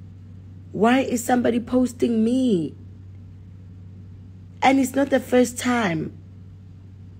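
A woman speaks with animation close to a phone microphone.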